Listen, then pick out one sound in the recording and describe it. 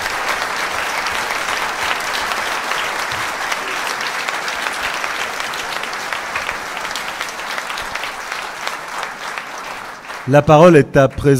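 A large crowd applauds steadily in an echoing hall.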